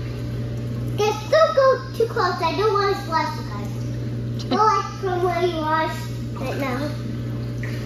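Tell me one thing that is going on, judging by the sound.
A young girl talks in a high, lively voice nearby.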